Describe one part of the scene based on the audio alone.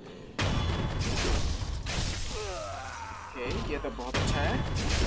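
A grappling rope whips and zips through the air.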